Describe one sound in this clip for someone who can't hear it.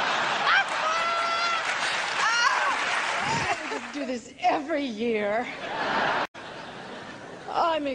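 An audience laughs and cheers in a large hall.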